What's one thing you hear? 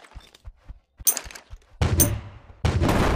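Gunshots crack sharply.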